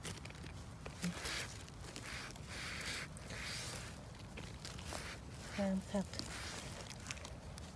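A gloved hand rustles through dry leaves and pine needles.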